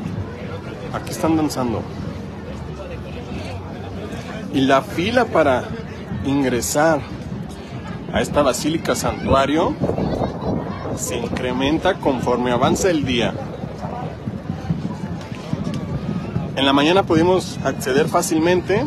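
A person talks loudly and with animation close by.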